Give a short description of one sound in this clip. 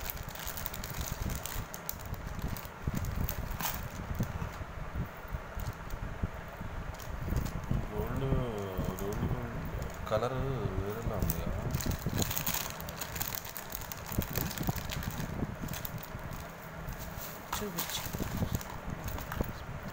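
Jewellery chains clink softly.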